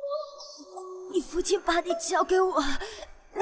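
A young woman groans in pain.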